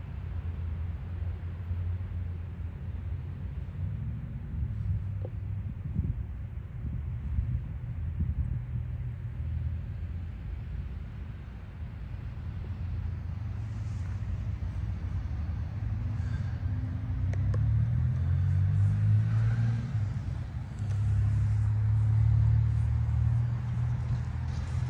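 Wind blows outdoors, rumbling and gusting.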